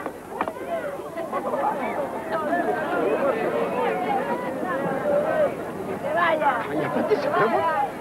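Performers scuffle and thump on the pavement.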